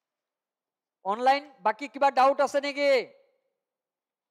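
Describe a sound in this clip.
A man speaks calmly into a close headset microphone.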